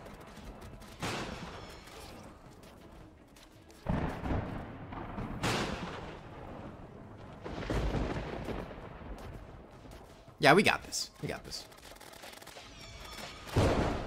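Game laser and magic blasts fire in loud bursts.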